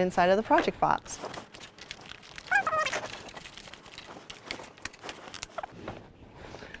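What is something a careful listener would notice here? Plastic packaging crinkles and rustles as hands open it.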